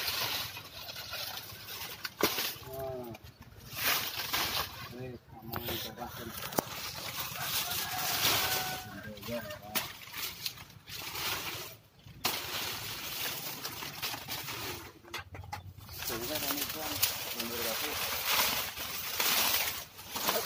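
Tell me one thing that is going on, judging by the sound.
Dry banana leaves rustle and crackle as they are pulled and dragged.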